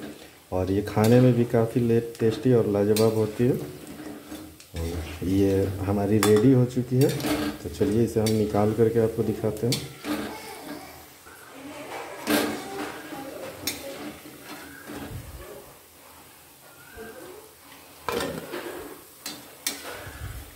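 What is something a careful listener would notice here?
A metal ladle clinks and scrapes against a wok.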